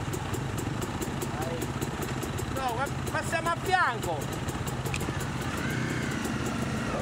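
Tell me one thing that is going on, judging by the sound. Motorbike engines idle with a steady, rapid rumble close by.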